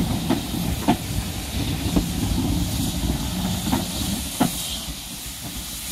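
Railway carriages rumble past close by and fade away.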